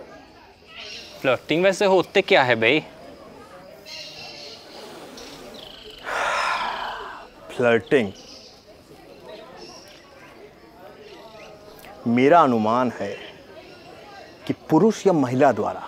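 A second man answers in a low voice close by.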